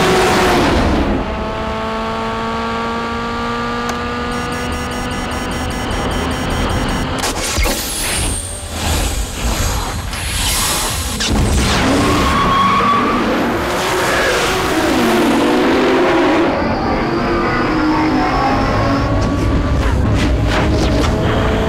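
A car engine roars and revs at high speed.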